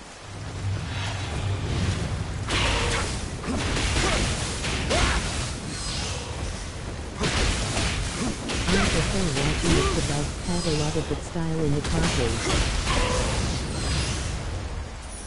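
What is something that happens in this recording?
Blades clash and strike in a fast fight.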